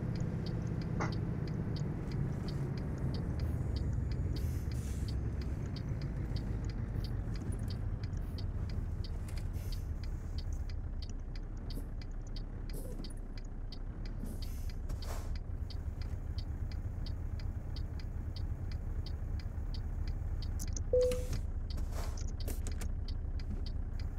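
A turn signal ticks rapidly.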